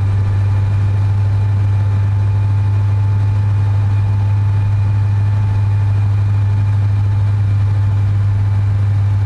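A truck engine drones steadily at highway speed.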